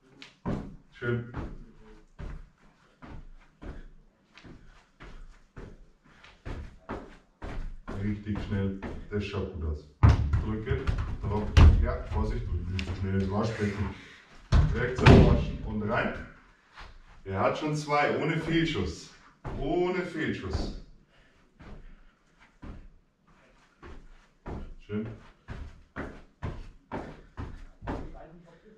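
A football thuds softly again and again as it is juggled.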